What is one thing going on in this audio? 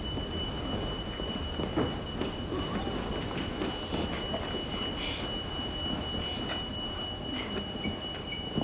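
Footsteps thud on a hard floor in an echoing hall.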